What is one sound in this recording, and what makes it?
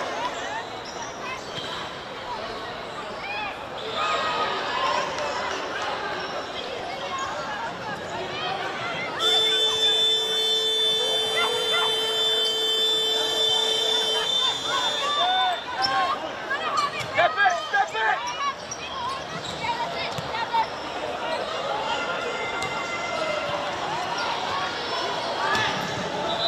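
Players call out to each other across an open outdoor pitch.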